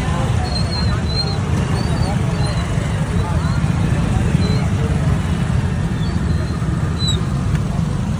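Motorbike engines idle and rumble close by.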